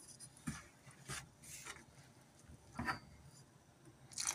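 A wooden spoon scrapes and taps against a plastic bowl.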